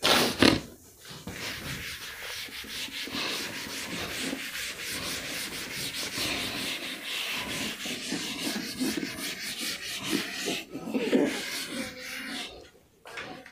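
A duster rubs across a chalkboard.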